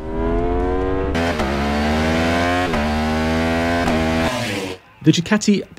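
A motorcycle engine roars at high revs, dropping in pitch with each gear change.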